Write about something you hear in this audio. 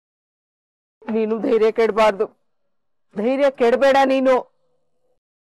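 A middle-aged woman speaks sharply and forcefully, close by.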